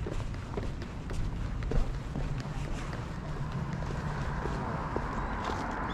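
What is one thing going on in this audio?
Footsteps tap on pavement close by.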